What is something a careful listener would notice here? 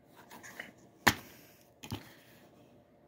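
A plastic case snaps open.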